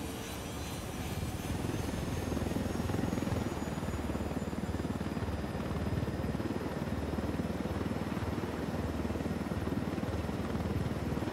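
Helicopter rotor blades thump rapidly and steadily, growing louder as the helicopter takes off.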